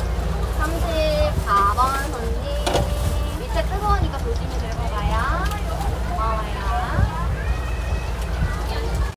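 A young woman talks briefly nearby.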